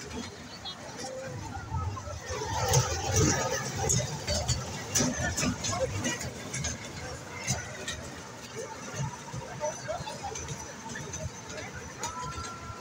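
Young children chatter and call out nearby.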